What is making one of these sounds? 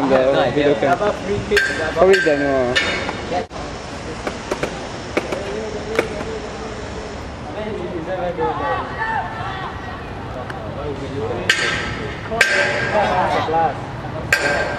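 Young men shout to each other outdoors across a playing field.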